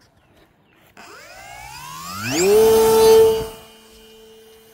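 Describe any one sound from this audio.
A small electric propeller motor spins up with a rising whine.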